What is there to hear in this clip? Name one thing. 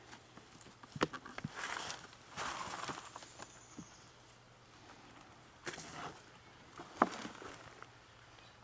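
A plastic pot scrapes and thumps as it is lifted off the soil.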